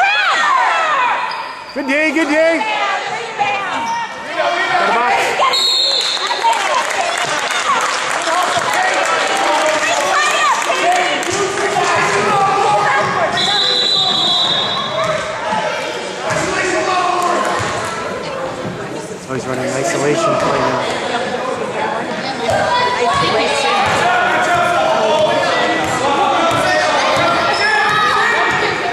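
Children shout and cheer throughout in a large echoing gym.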